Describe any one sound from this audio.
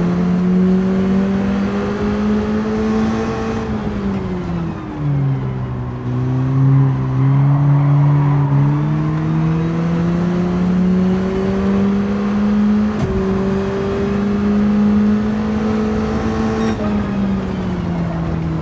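A racing car engine whines at high revs, dropping in pitch as it slows for a corner and then rising again.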